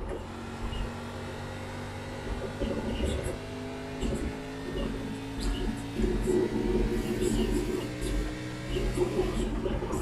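A racing car engine roars steadily.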